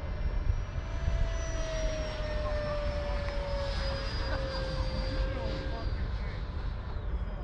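A small drone's motors whine high overhead.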